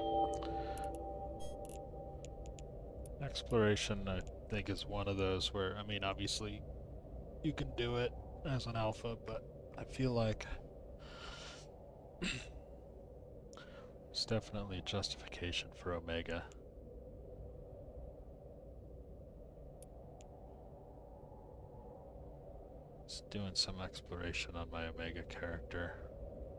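A deep spaceship engine hum drones steadily.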